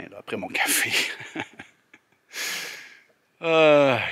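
A middle-aged man laughs close to a microphone.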